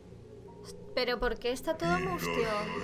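A young woman speaks close to a microphone with animation.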